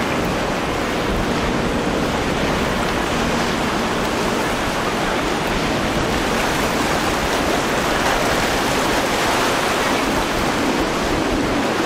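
A motorboat engine roars steadily as the boat speeds past.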